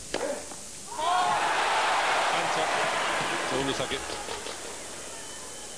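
A large crowd cheers and applauds loudly, then fades.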